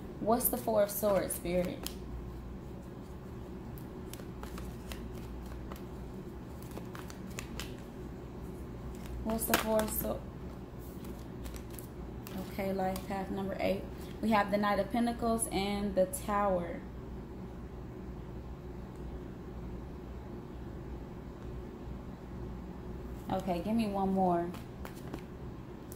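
Playing cards riffle and flick softly as they are shuffled.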